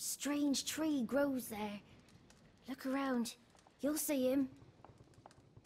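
A young boy speaks in a plaintive voice, close by.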